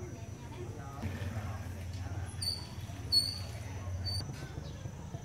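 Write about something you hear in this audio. An oar dips and swishes through river water.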